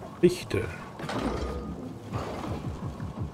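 Hands grip and pull on a rope while climbing.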